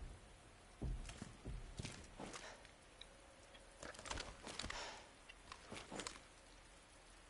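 Footsteps splash softly on a wet floor.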